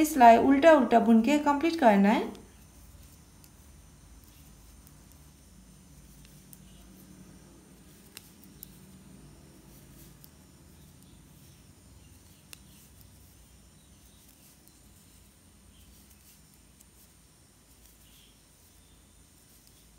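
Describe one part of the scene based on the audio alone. Knitting needles click softly against each other.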